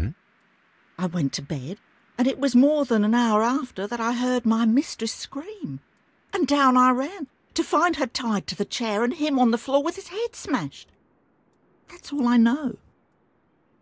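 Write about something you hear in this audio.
A young woman talks at length in a calm, steady voice, close by.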